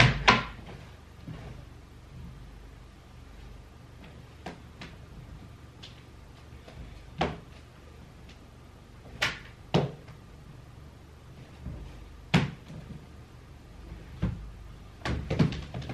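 Fabric rustles and flaps.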